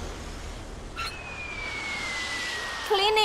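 Falling bombs whistle downward in pitch.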